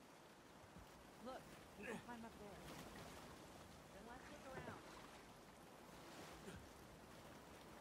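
Water splashes as a man swims through a pool.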